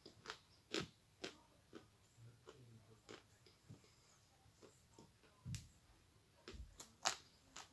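A woman eats and chews wetly close to a microphone.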